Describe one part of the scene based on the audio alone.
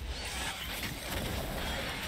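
A fiery blast roars briefly.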